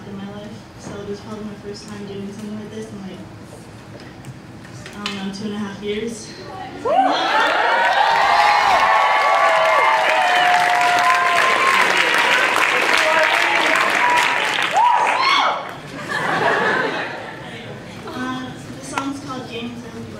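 A guitar is strummed softly in a large echoing hall.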